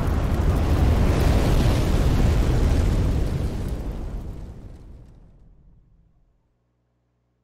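A deep, fiery roar rumbles loudly, then fades away to silence.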